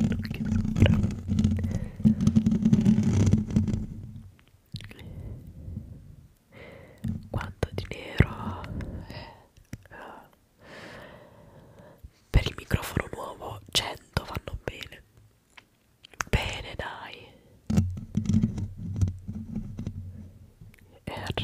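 Fingertips scratch and rub a microphone's foam cover up close.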